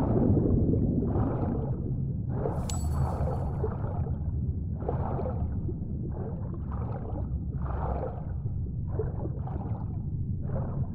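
Swimming strokes swish through water in a steady rhythm.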